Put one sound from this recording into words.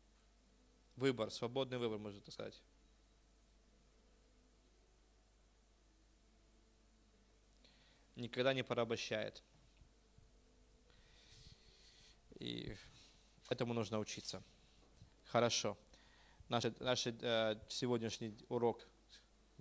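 A middle-aged man speaks into a microphone in short, measured phrases with pauses between them.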